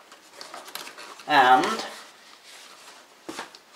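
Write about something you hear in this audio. Cardboard flaps scrape and thump as a box is handled.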